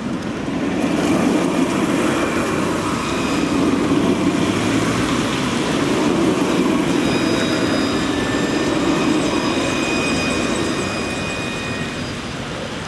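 A tram's motor whines with steady high tones.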